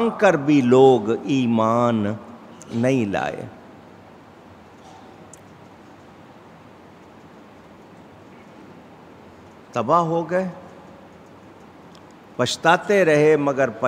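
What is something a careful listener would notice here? A middle-aged man speaks slowly and with feeling into a microphone, with long pauses.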